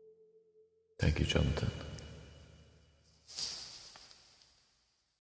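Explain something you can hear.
An elderly man laughs softly, close to a microphone.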